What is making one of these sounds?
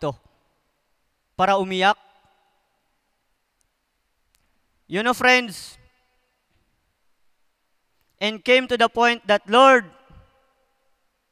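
A man speaks with animation into a microphone through loudspeakers, in short bursts with pauses, in a large echoing hall.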